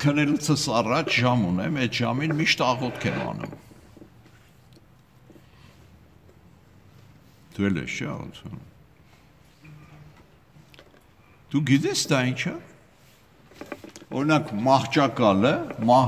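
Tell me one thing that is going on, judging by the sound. An elderly man speaks calmly close to the microphone, with pauses.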